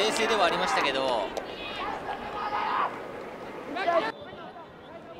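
A crowd cheers and shouts in an open stadium.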